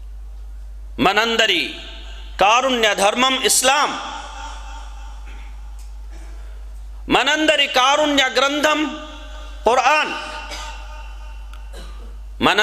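A man speaks in a loud, chanting voice through a microphone, echoing in a large hall.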